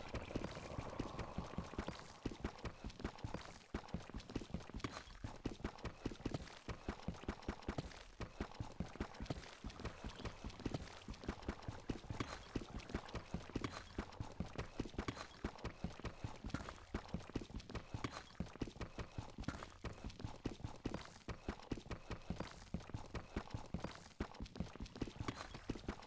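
Rapid, rhythmic tapping of stone blocks being dug out with a pickaxe.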